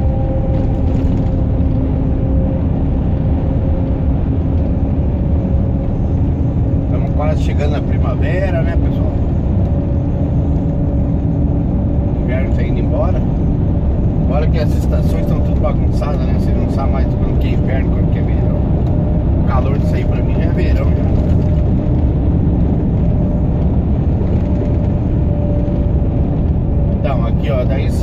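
A truck engine drones steadily from inside the cab.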